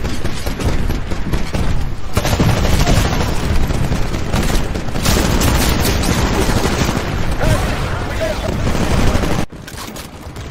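Gunfire and explosions rattle loudly in a game battle.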